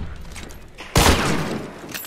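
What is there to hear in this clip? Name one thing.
A gun fires a loud shot that echoes.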